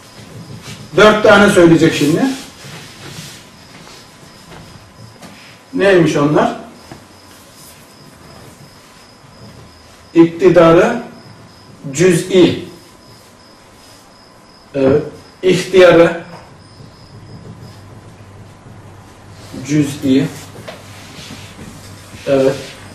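A man talks calmly in short bursts.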